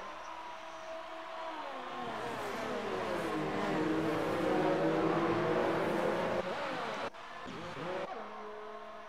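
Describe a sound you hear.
Racing car engines whine at high pitch, rising and falling as they shift gears.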